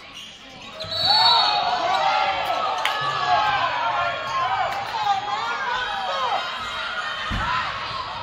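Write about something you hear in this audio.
A crowd in an echoing gym cheers and shouts.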